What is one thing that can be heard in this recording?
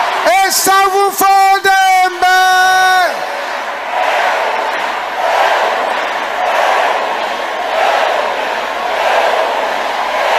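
A man preaches loudly into a microphone.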